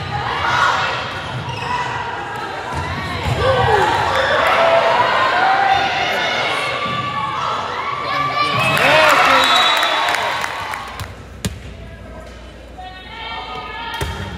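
Young women shout and call out in a large echoing gym.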